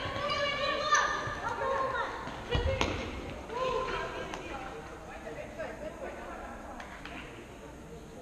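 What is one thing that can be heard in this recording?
Sneakers squeak sharply on a hard indoor court.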